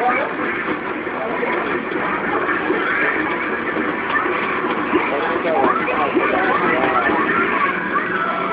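Fast electronic game music plays loudly from an arcade machine.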